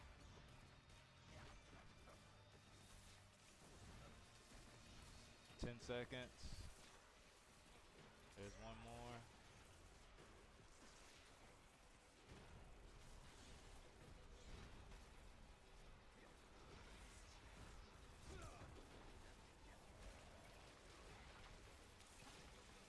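Magic blasts crackle and burst during a fight.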